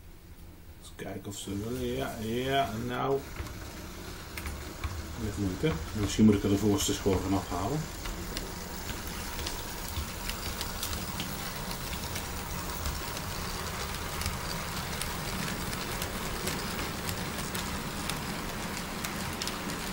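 A model train rolls along its tracks with a steady clattering rumble, growing louder as it passes close.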